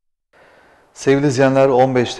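A man speaks calmly and clearly into a microphone, like a news presenter.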